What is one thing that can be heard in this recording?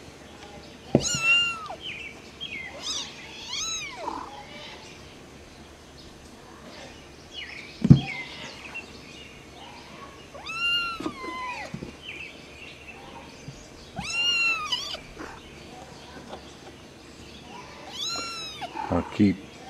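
An adult cat meows loudly close by.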